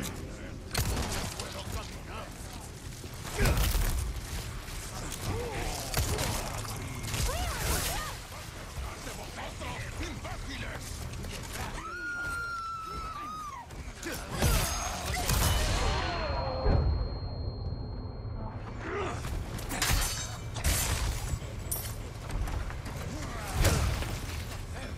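Men shout and groan nearby.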